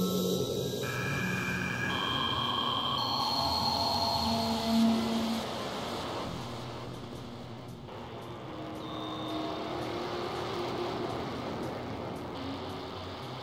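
A synthesizer plays shifting electronic tones.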